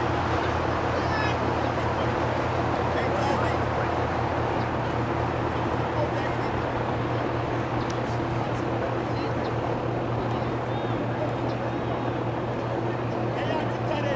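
Young women shout to each other across an open field in the distance.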